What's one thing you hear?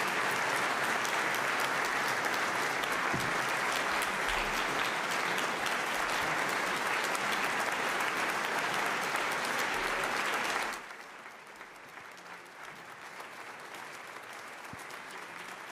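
A large audience applauds steadily, then the clapping suddenly drops to a quieter patter.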